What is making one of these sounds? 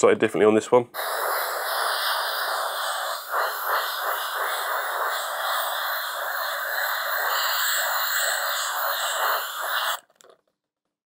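An airbrush hisses steadily as it sprays.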